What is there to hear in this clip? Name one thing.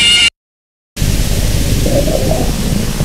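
Static hisses loudly.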